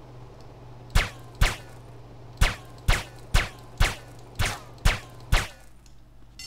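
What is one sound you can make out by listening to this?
A pistol fires several sharp shots indoors.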